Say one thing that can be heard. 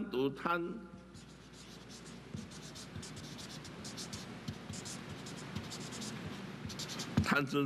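A marker pen scratches and squeaks across paper.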